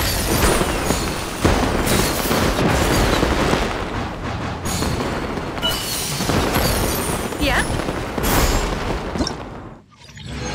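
Bright chimes ring out again and again.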